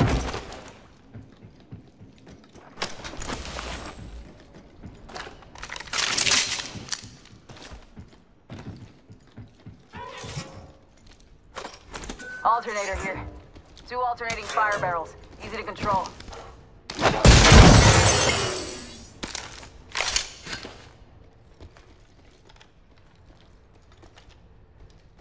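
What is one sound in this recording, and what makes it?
Footsteps tap on hard metal floors.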